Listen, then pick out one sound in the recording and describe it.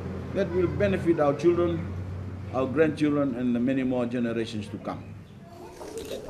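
An elderly man reads aloud calmly, close by.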